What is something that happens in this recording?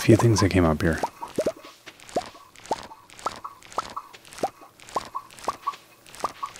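Short, bright, plucked game tones sound in a quick, steady rhythm.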